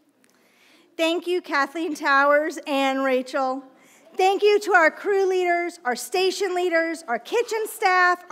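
A young woman reads aloud clearly through a microphone.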